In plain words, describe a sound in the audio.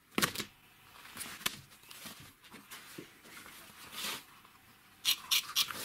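A rubber hose rubs and scrapes against a metal part.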